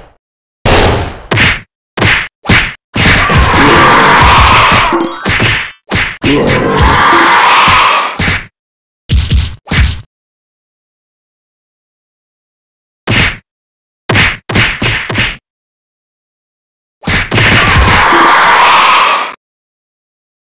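Punches and kicks land with sharp smacks and thuds in quick bursts.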